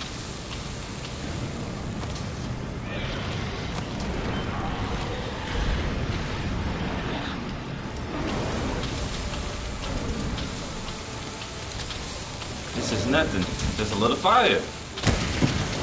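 Lava rumbles and crackles steadily.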